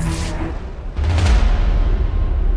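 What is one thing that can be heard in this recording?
A heavy blow lands with a loud thud.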